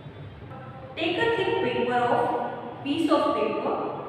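A woman reads aloud calmly, close to a microphone.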